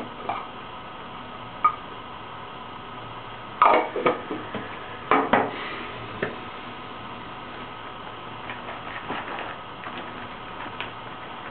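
A ceramic bowl clinks and knocks as a man handles it close by.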